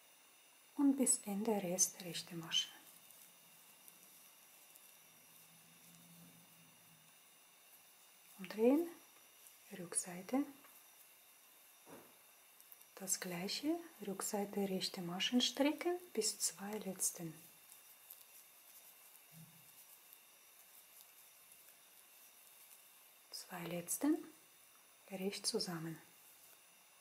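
Knitting needles click and scrape softly against each other.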